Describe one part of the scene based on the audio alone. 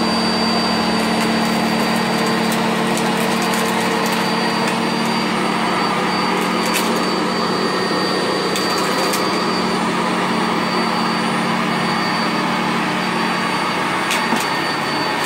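Debris rattles and clicks as a vacuum cleaner sucks it up.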